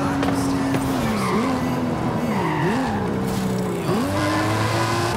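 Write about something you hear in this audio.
A car engine drops in pitch as it slows and shifts down.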